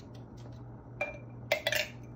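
A spoon clinks against a glass jar.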